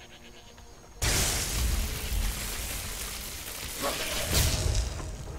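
Lightning magic crackles and buzzes loudly.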